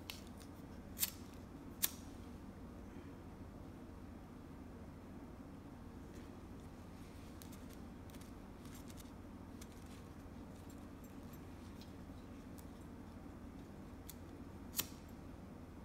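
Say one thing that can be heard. A lighter clicks as it is flicked on.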